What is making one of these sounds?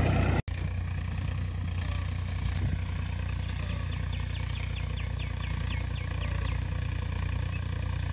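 A tractor engine rumbles steadily in the distance.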